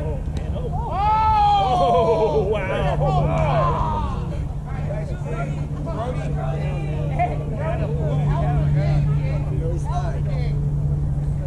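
Young players shout excitedly across an open field.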